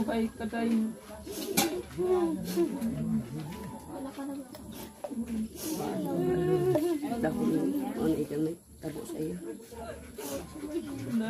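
An elderly woman speaks in a tearful, wavering voice close by.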